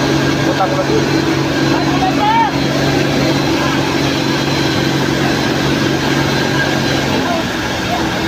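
A fire engine idles with a steady low hum.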